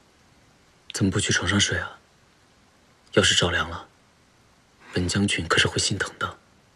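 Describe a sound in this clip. A young man speaks softly and tenderly, close by.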